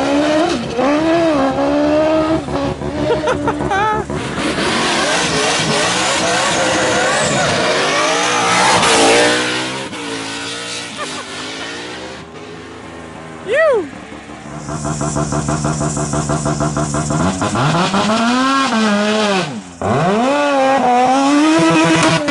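A race car engine revs hard and roars.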